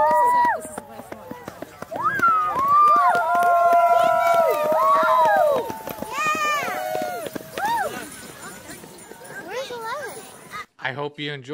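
Many sled dogs howl and yelp excitedly.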